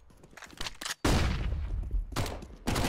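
A stun grenade bursts with a loud bang.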